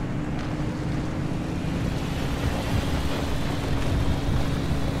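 Tyres roll over a rough dirt road.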